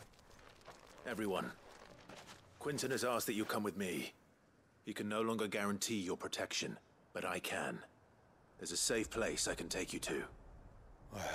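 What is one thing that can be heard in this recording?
A man speaks calmly and low.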